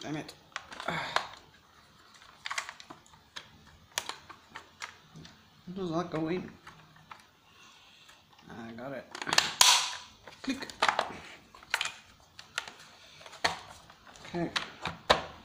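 A hard plastic tool knocks and clicks as it is handled.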